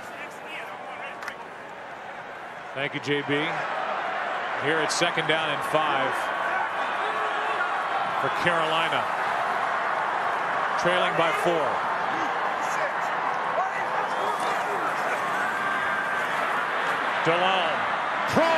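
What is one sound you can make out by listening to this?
A large stadium crowd cheers and roars outdoors.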